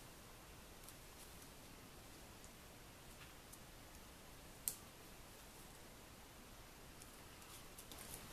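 Fingers press and rub a paper circle onto card.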